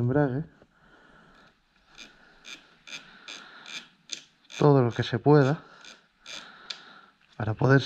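Small metal parts click softly under handling.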